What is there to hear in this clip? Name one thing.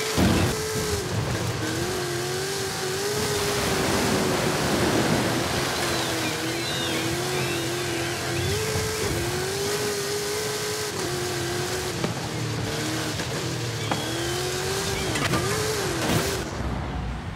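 Tyres crunch and skid over sand and dirt.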